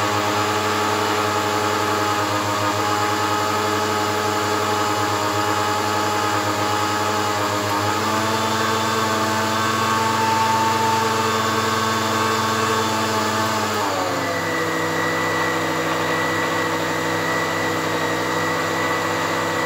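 A blender whirs loudly, its motor pitch shifting as the speed changes.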